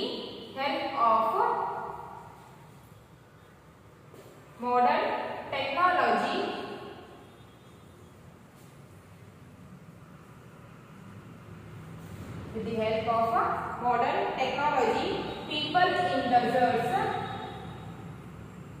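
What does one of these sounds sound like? A woman speaks calmly nearby, in short phrases.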